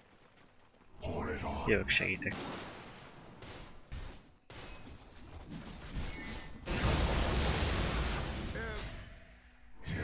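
Magic spells whoosh and crackle in bursts.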